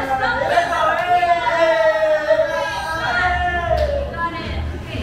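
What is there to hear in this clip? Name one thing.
A young woman shrieks and squeals excitedly nearby.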